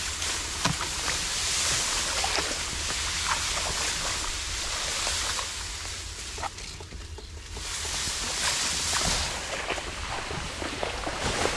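A stick swishes and thwacks against grass stems.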